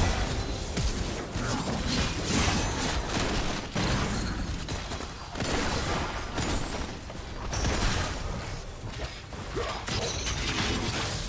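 Magic blasts and hits crackle and thud in a fast, busy fight.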